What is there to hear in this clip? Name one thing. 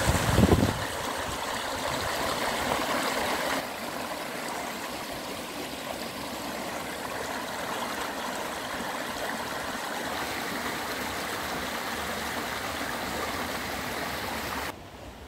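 A shallow stream rushes and gurgles over stones outdoors.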